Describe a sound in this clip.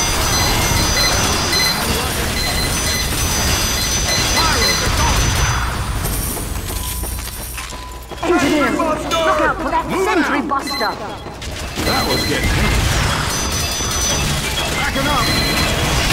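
Guns fire in rapid bursts amid a noisy battle.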